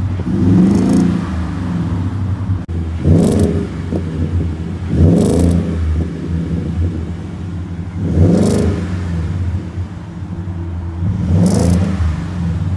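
A truck engine idles with a deep exhaust rumble.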